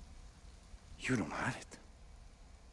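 A man speaks briefly in a low, tense voice, close by.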